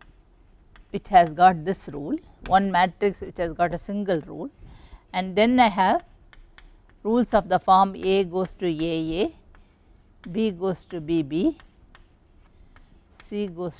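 A woman speaks calmly, as if lecturing.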